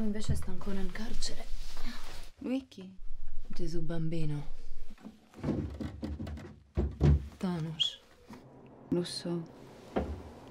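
A woman speaks quietly and calmly nearby.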